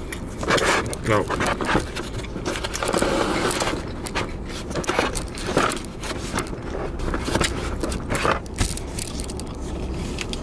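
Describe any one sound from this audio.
Paper wrapping crinkles.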